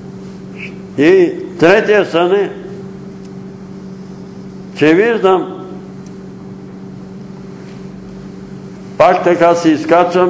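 An elderly man speaks slowly in short bursts with pauses, in a room with some echo.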